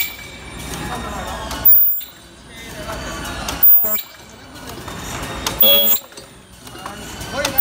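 A machine whirs and clatters steadily.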